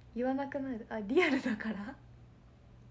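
A young woman laughs brightly.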